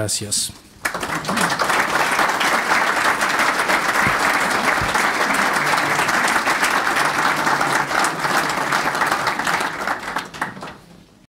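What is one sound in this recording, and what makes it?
A crowd applauds in a large room, then the clapping fades.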